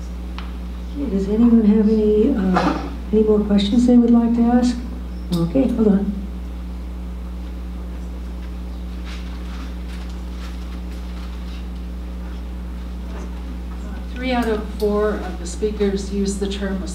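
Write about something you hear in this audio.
A woman speaks calmly through a microphone and loudspeaker.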